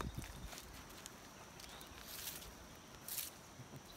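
Footsteps shuffle over dry leaves and a concrete slab.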